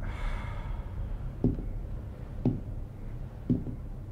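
Footsteps thud on a hard floor nearby.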